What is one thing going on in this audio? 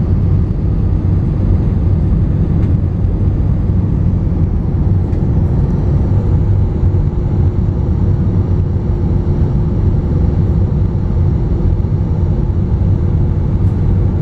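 A jet airliner's engines roar in a steady, low drone inside the cabin.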